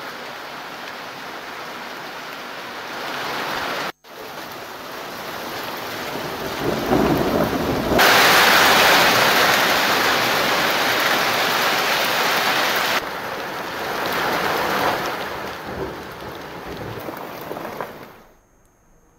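Hail patters steadily on the ground outdoors.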